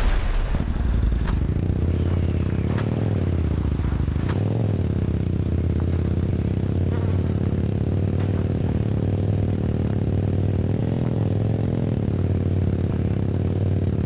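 A quad bike engine drones and revs up and down as it drives.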